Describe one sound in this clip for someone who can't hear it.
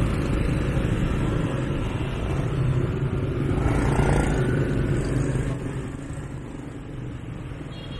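Many motorbike engines hum and buzz close by in heavy traffic.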